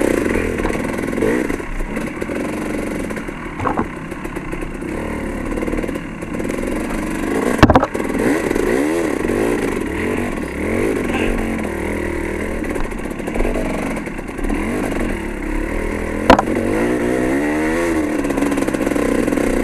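Knobby tyres rumble and bump over a rough dirt trail.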